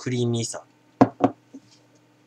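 A glass is set down on a wooden table with a knock.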